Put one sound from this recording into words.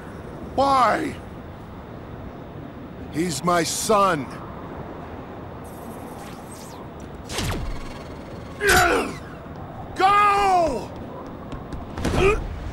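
A young man talks close to a microphone.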